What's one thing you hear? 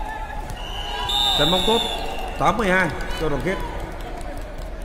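Young women shout and call out loudly.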